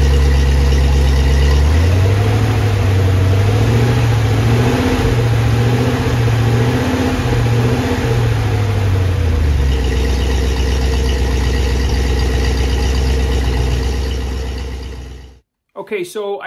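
An engine idles loudly and roughly, its revs rising and falling.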